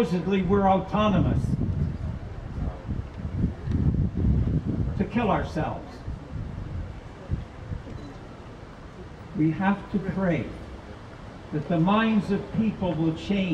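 An elderly man chants into a microphone, heard through loudspeakers outdoors.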